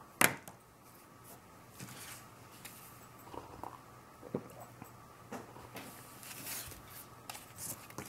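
A glass cup clinks lightly on a table.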